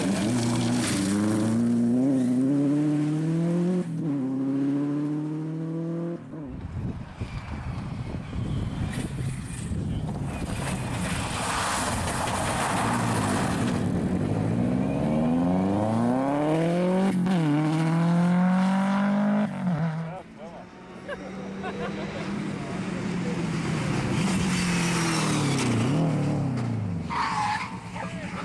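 A rally car engine roars and revs hard, rising and falling in pitch as the car shifts gears.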